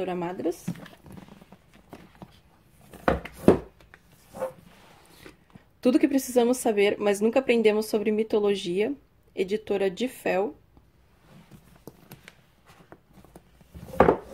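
Paper covers rustle as a book is handled.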